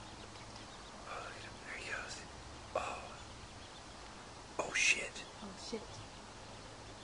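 A duck quacks in short bursts.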